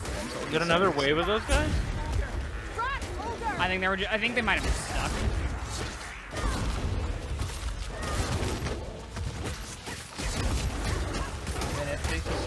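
Weapons clash and thud in a fast fight.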